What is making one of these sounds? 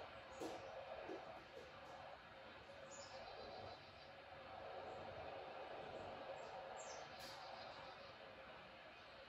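A stadium crowd murmurs steadily through a television speaker.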